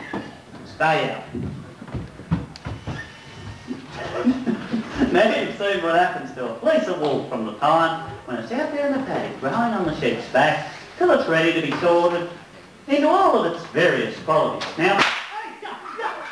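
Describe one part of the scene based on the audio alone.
A man speaks loudly on a stage, heard from within an audience in a large echoing hall.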